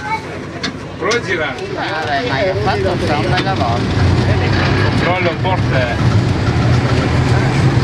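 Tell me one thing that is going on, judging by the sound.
An elderly man talks nearby.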